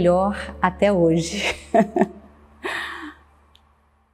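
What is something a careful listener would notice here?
A woman speaks calmly and warmly to someone close by.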